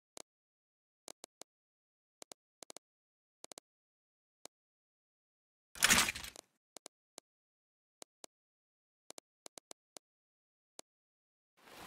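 Soft menu clicks tick briefly, again and again.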